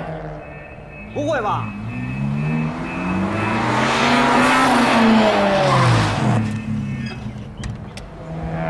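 A car engine revs and passes by.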